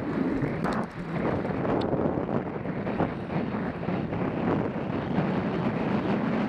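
Bicycle tyres rattle and crunch over a bumpy dirt trail.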